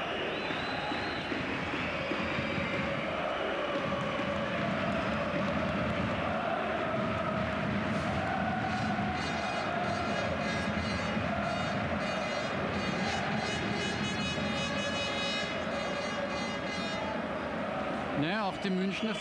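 A large crowd chants and sings loudly in a stadium.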